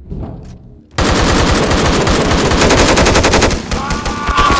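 A rifle fires rapid loud bursts.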